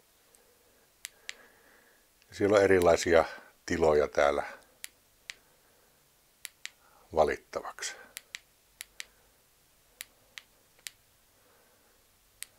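A small plastic battery box clicks as it is handled.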